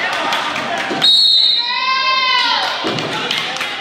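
A referee blows a long whistle.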